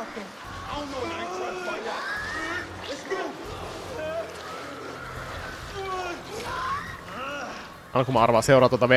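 A man speaks tensely and urgently.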